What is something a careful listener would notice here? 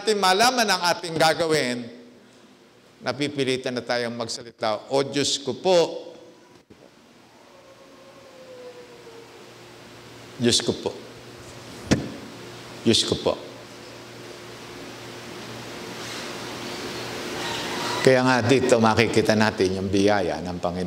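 An elderly man speaks calmly through a microphone.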